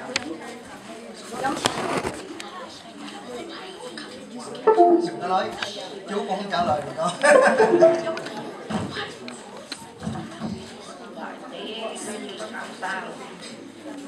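A middle-aged man speaks calmly into a microphone over loudspeakers in an echoing hall.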